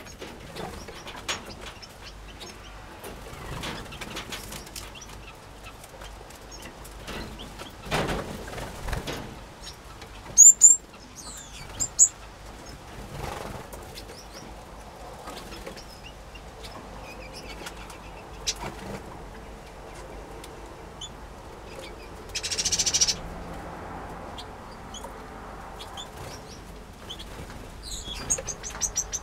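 Small finches chirp and twitter close by.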